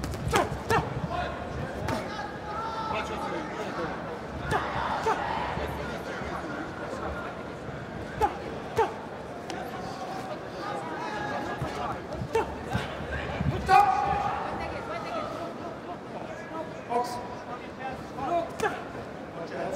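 Punches thud against bodies and gloves.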